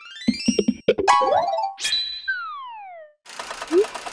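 Cheerful game jingles play with quick chimes.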